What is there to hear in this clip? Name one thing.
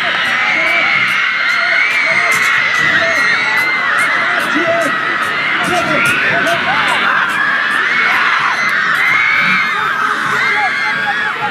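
A large outdoor crowd cheers and shouts loudly throughout.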